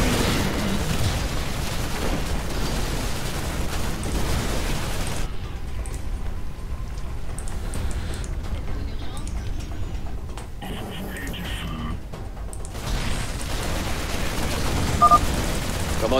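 Gunfire and explosions crackle in a battle.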